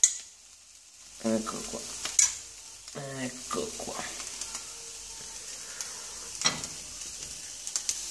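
Food sizzles and crackles on a hot grill.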